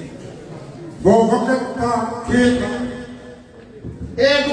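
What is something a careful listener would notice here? A man speaks loudly through a microphone.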